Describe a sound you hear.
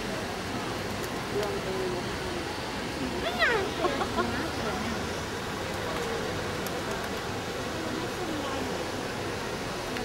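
A woman talks softly close by.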